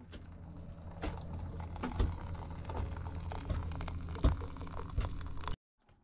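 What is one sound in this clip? A metal kettle clinks against a pot.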